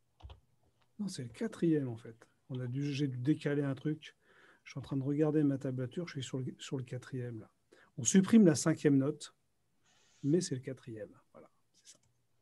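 An older man talks calmly over an online call.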